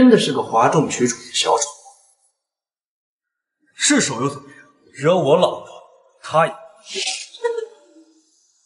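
A young man speaks sharply and mockingly.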